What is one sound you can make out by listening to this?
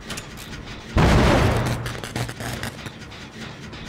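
A heavy blow lands with a loud crash.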